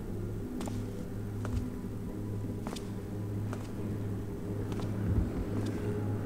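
Footsteps tread slowly on stone.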